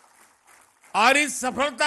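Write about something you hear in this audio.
A man speaks through a microphone and loudspeakers.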